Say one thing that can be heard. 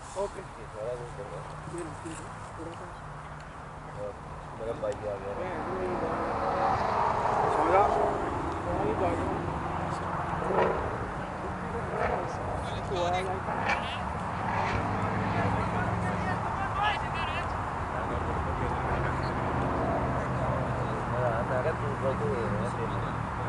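Men talk and call out to each other at a distance outdoors.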